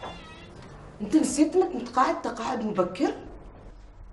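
A woman answers sharply nearby.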